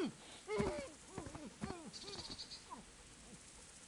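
A dog barks several times close by.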